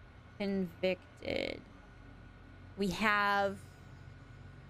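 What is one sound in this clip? A young woman speaks in short, high bursts close to a microphone.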